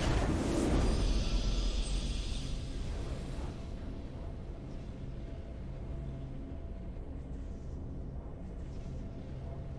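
Triumphant fanfare music swells and then holds softly.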